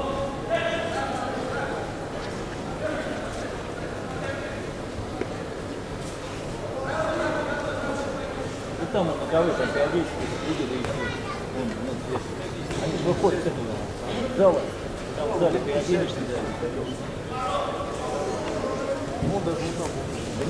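Bare feet shuffle and thump on a mat.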